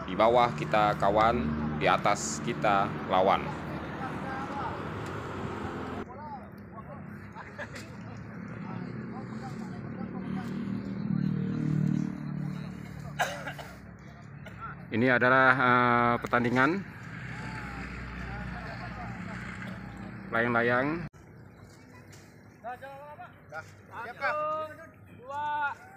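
Young men talk and call out nearby outdoors.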